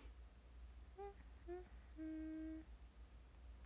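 A young woman hums a few short notes softly up close.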